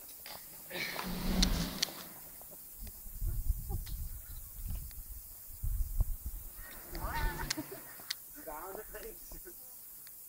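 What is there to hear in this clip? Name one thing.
A young woman shouts with excitement from a distance, outdoors.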